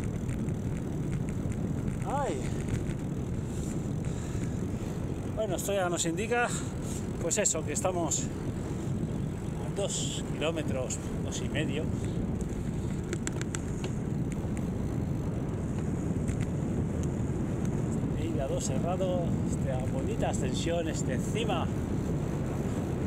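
Bicycle tyres hum on smooth tarmac.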